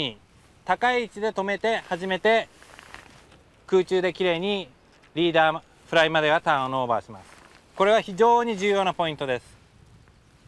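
A man speaks calmly and clearly into a microphone, close by.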